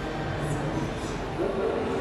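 Men and women chat indistinctly nearby in a busy indoor space.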